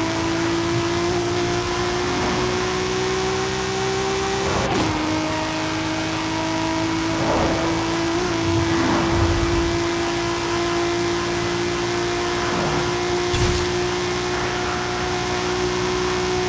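A car engine roars at high speed with a steady high whine.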